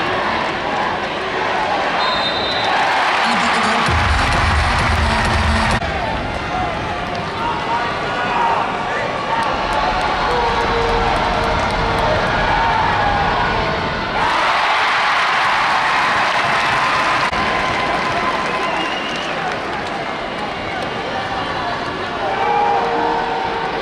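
A large crowd cheers and roars in a big echoing arena.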